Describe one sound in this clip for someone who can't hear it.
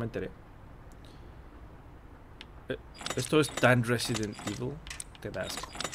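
Metal combination lock dials click as they turn.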